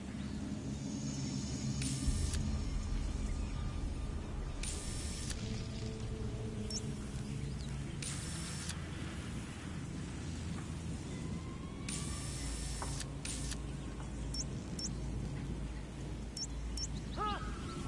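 Soft electronic beeps sound as a map zooms in and out.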